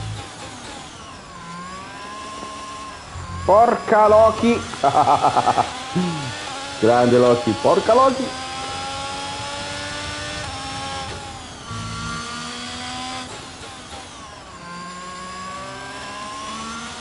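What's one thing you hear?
A racing car engine revs up and down as gears shift.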